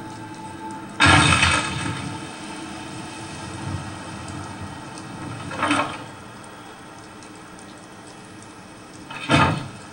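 A heavy chest lid thuds shut with a clatter.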